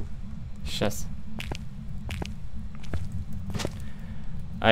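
Footsteps tap slowly on a hard tiled floor.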